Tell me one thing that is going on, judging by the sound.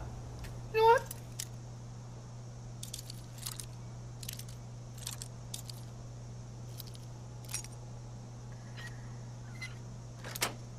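A metal lockpick clicks and scratches inside a lock.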